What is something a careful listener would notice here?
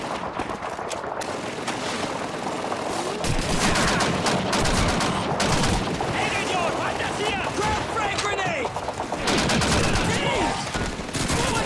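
A rifle is reloaded with metallic clicks.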